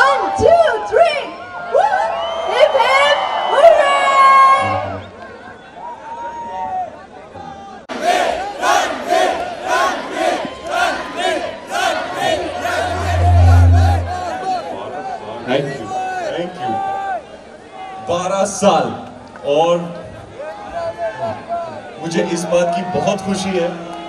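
A man speaks with animation through a microphone over loudspeakers.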